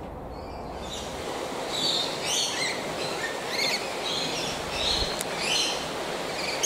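A bird chirps and squawks nearby.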